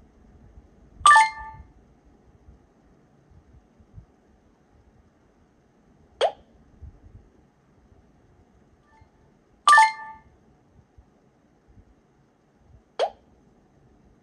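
Short electronic chimes ring out from a game on a tablet.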